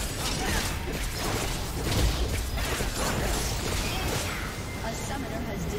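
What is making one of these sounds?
Magical spell effects crackle and burst in quick succession.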